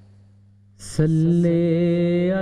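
A man chants in a long, melodic voice close to a microphone.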